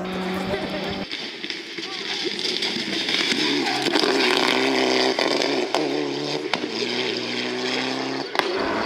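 A turbocharged four-cylinder rally car accelerates at full throttle.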